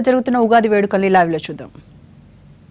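A young woman reads out news calmly into a close microphone.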